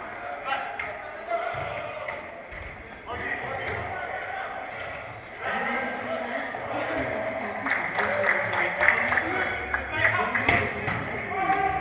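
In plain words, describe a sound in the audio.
Young men shout and call to each other in a large echoing hall.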